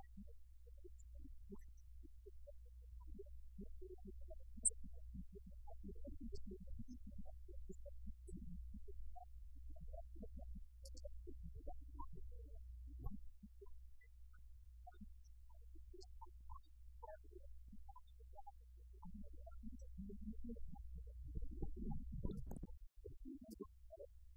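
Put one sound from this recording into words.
A man speaks calmly at a distance in a room.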